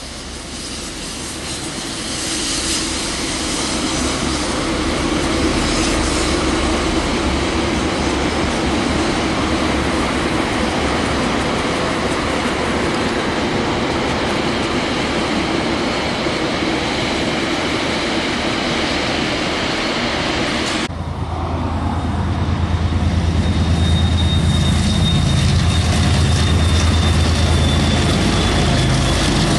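A steam locomotive chuffs steadily as it passes.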